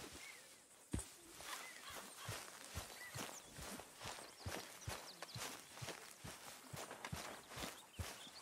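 Boots walk on grass.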